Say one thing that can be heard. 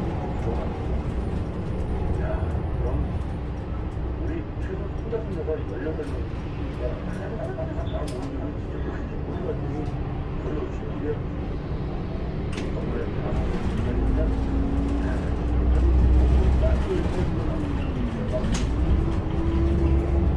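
A bus engine hums steadily from inside the cab and rises in pitch as the bus speeds up.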